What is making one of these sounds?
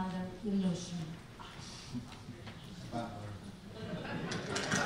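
A woman speaks into a microphone in a calm voice.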